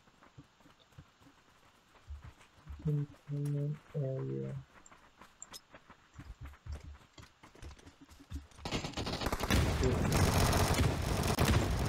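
Footsteps crunch quickly over frozen ground.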